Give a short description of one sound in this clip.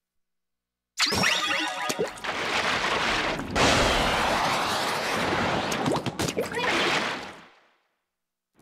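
Ink sprays and splatters in a rushing, hissing stream.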